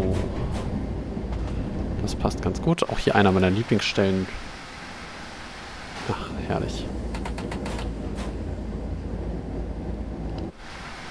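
A locomotive engine rumbles steadily.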